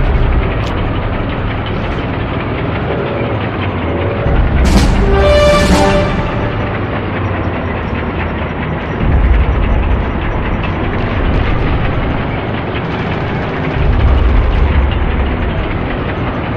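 A tank engine rumbles steadily and deeply.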